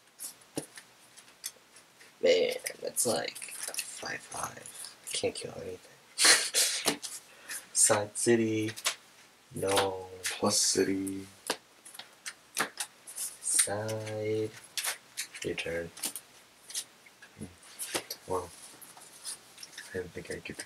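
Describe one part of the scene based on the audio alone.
Playing cards are laid down and slide softly across a mat.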